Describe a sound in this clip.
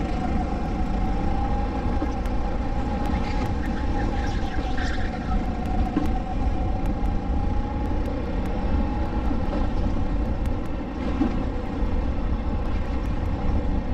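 A four-stroke racing kart engine drones at full throttle.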